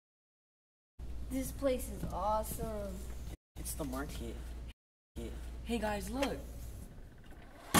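A teenage boy speaks nearby.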